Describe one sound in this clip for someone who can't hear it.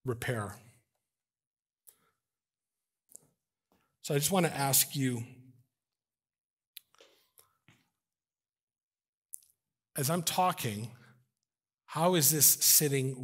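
A middle-aged man speaks with animation through a microphone in a large room, pausing between phrases.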